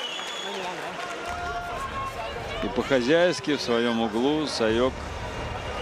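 A crowd murmurs and cheers in a large hall.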